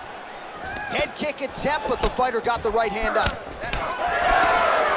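Punches land with sharp smacks.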